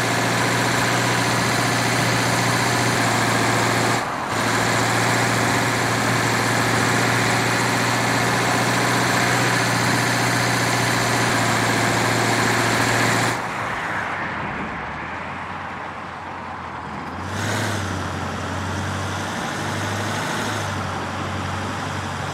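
An armoured vehicle's engine rumbles steadily as it drives along a road.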